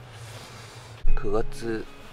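Fabric rustles as a young man moves a blanket.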